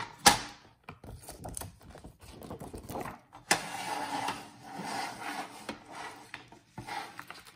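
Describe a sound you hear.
A plastic sheet crinkles and rustles as it is handled.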